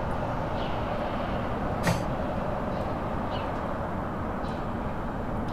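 A car engine hums steadily as a car drives.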